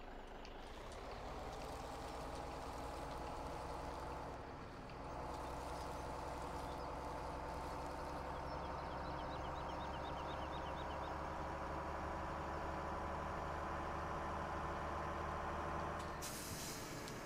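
A truck engine rumbles steadily as the truck drives along.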